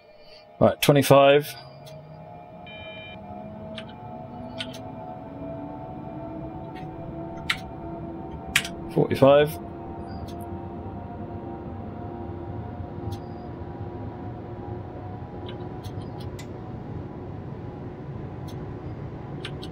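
An electric motor whines, rising in pitch as a train speeds up.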